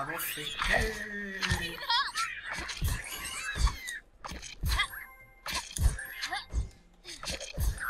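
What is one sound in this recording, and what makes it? Cartoonish game sound effects pop, thump and chime in quick succession.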